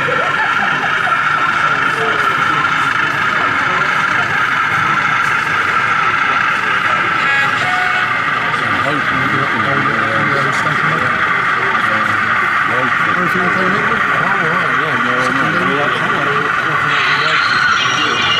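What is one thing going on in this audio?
A model train hums and rattles steadily along its track.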